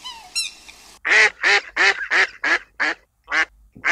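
Ducks quack loudly in a quick series.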